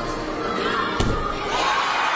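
A gymnast's feet thud onto a mat in a large echoing hall.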